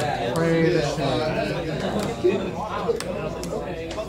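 Playing cards are shuffled by hand.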